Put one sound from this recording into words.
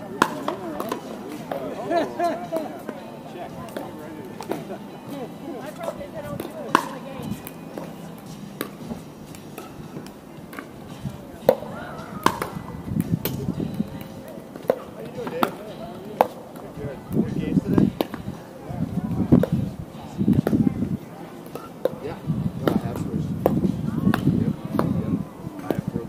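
Paddles pop against a plastic ball in sharp, quick hits.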